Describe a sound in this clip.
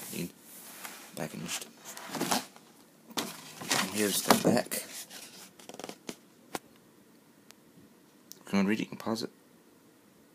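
Hands rub and knock against a cardboard box up close.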